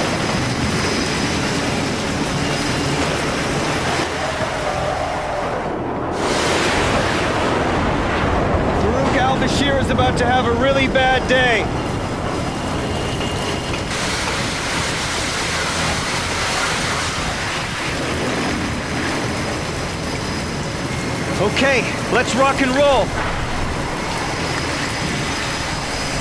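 Strong wind blows steadily outdoors in a storm.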